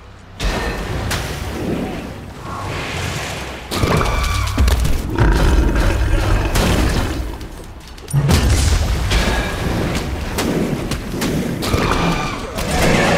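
Magic spell blasts whoosh and crackle in bursts.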